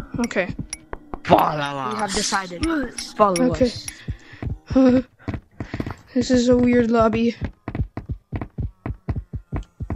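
Hands slap and thump on wooden surfaces in quick, uneven taps.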